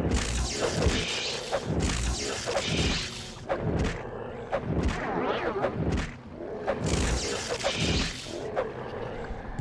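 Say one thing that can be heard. Magic spells crackle and burst with loud whooshes.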